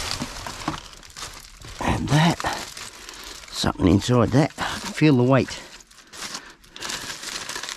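Foil crinkles in a hand.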